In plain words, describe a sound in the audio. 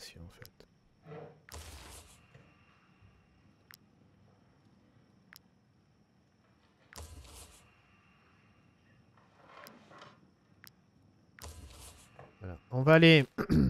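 A game interface gives soft clicks and chimes as menu buttons are pressed.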